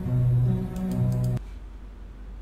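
Slow bamboo flute music plays through a speaker, then cuts off abruptly.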